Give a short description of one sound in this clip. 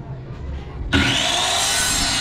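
A circular saw whines as it cuts through a board.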